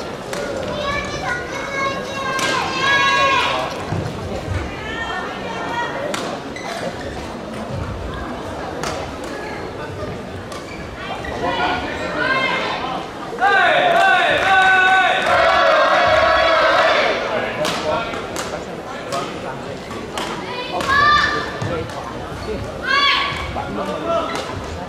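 Young women shout loudly in an echoing hall.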